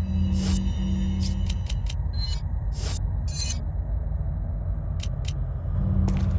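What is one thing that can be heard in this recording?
Menu selection clicks and beeps sound in quick succession.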